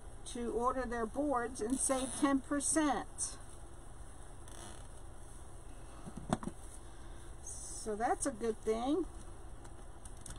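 Plastic tinsel and netting rustle as hands handle them.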